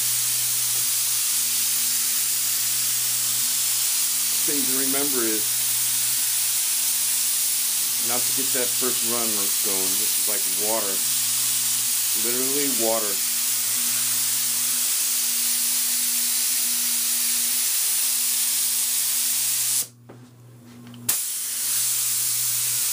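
A spray gun hisses steadily with a rush of air.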